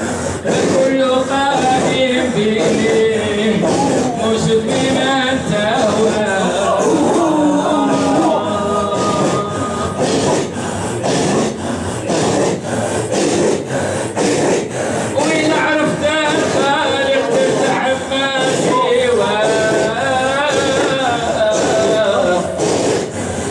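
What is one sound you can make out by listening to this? A man leads the chant in a strong, sustained voice.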